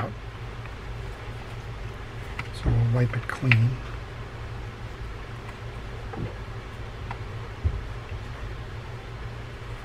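A cloth rubs softly against a small metal part.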